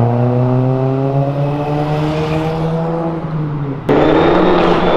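A motorcycle engine roars close by as it passes.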